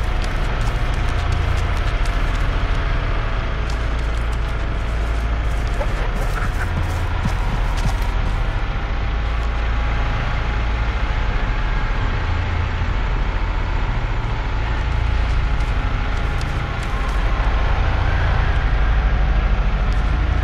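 Tall grass rustles as someone creeps slowly through it.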